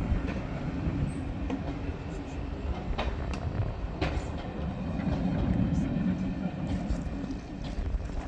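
A train rolls slowly past with a low rumble.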